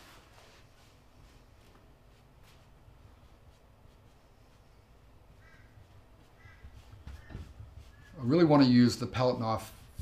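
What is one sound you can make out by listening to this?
A paintbrush brushes and dabs softly on canvas.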